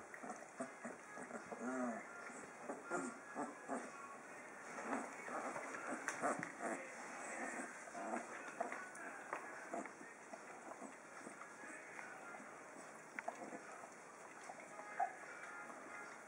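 A dog and a puppy scuffle on a soft blanket.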